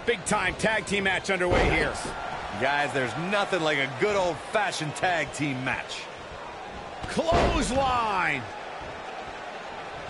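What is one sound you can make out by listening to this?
Wrestlers thud onto a ring mat.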